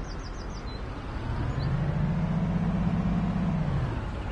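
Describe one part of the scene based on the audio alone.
A bus engine revs up loudly as the bus pulls away.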